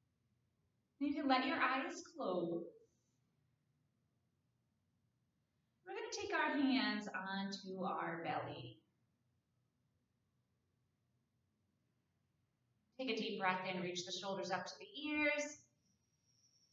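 A woman speaks calmly and softly through a microphone, with long pauses.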